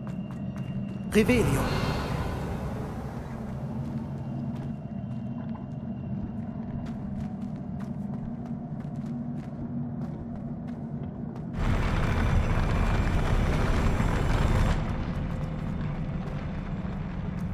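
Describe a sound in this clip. A low steady ambient hum drones throughout.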